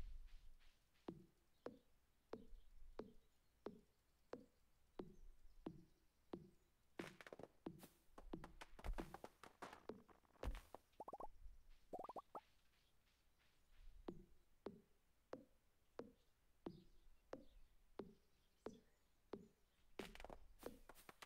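A fishing reel clicks in a steady rhythm.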